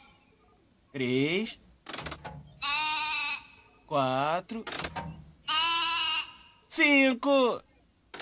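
A machine gives out bright, swooping musical toots.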